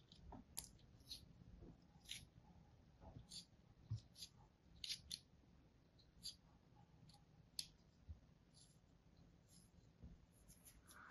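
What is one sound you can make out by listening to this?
A blade softly scrapes and crackles through crumbly sand.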